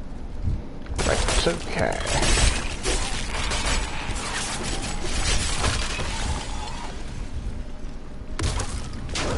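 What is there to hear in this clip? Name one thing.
Skeletons clash and crack as they fight, with bones breaking.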